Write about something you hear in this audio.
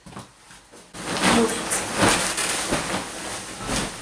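Bedding rustles and shuffles as it is moved about.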